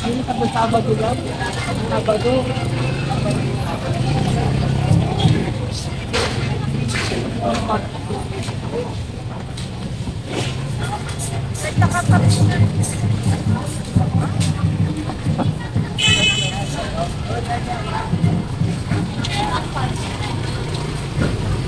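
A busy crowd murmurs and chatters all around outdoors.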